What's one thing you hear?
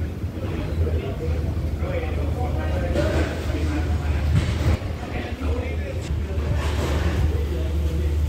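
Men talk nearby in calm voices.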